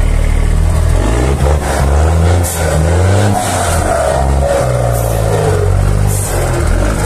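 A diesel truck engine revs up and down repeatedly.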